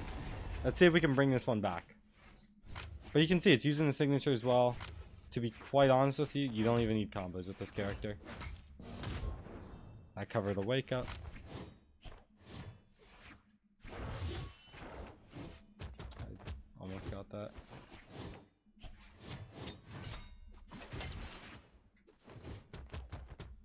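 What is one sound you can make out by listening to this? Video game hits and whooshes clatter in quick bursts.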